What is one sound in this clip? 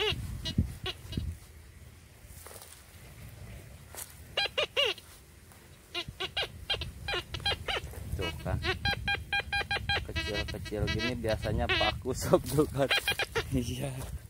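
A gloved hand scrapes through dry soil.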